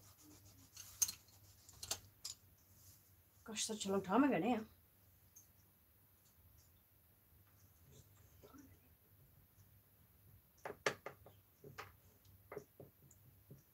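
Small tools clack and tap against a hard tabletop.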